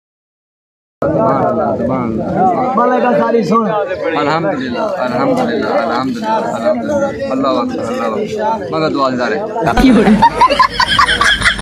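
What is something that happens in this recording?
Men talk and laugh together nearby.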